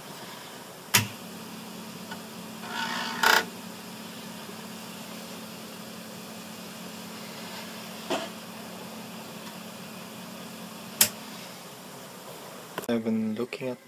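A small drive motor hums steadily, then stops.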